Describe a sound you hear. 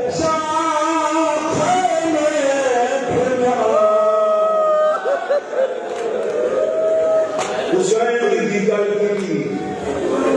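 A crowd of men chant along in response.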